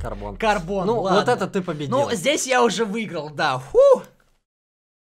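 Two young men talk excitedly and loudly, close to a microphone.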